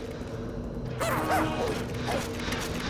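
A spell bursts with a sharp magical whoosh.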